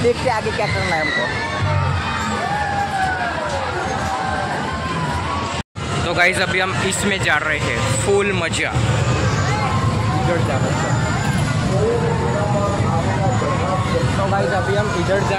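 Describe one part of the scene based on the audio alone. A crowd of people chatters in a busy outdoor hubbub.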